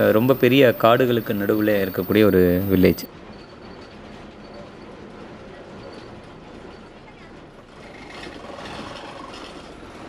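A bus engine rumbles as the bus rolls slowly.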